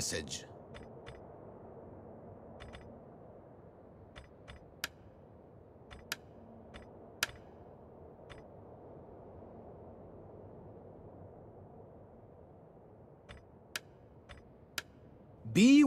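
Short soft clicks sound now and then.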